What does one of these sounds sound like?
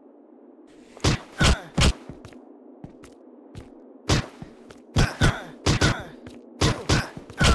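Bare fists land heavy punches on a body.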